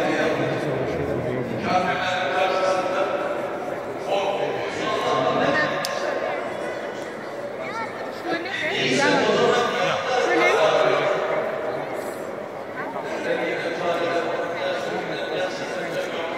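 A crowd of men and women murmurs and talks in a large echoing hall.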